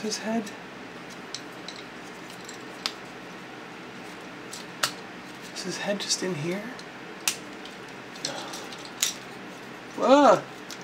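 Plastic parts of a toy click and snap as they are twisted into place.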